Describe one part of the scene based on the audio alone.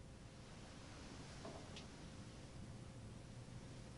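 A metal cup is set down on a table with a soft knock.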